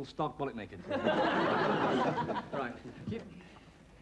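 A studio audience bursts into laughter.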